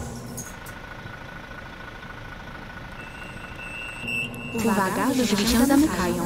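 Bus doors hiss open and shut.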